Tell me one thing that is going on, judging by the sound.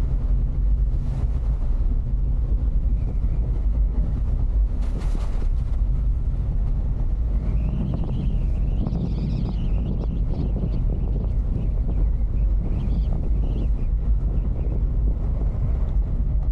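Tyres roll and crunch steadily over a gravel road.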